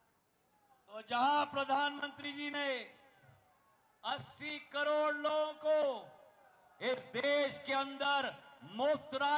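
A man shouts slogans loudly through a loudspeaker.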